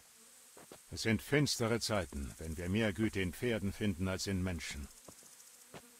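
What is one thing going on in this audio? A man speaks gravely and slowly.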